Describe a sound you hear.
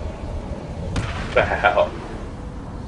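Punches land with heavy thuds in a brawl.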